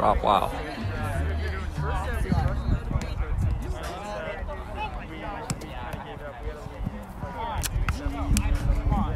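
Young men call out and talk loudly outdoors.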